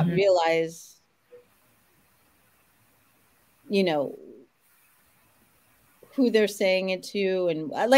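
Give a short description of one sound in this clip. A woman speaks with animation over an online call, pausing between phrases.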